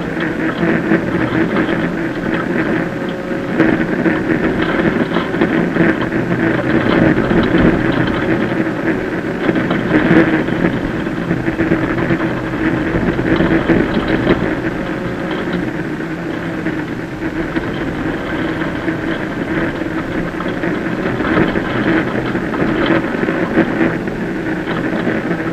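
A car engine roars loudly from inside the cabin, revving up and down.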